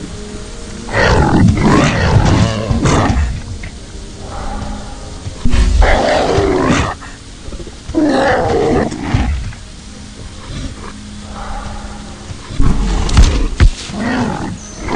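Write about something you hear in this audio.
A large creature roars loudly in bursts.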